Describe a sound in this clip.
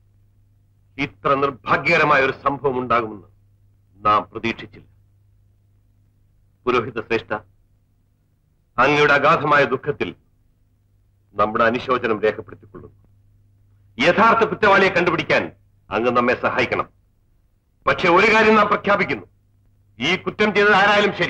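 A man speaks with feeling in a clear, close voice.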